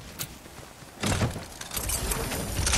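A treasure chest bursts open with a bright chime.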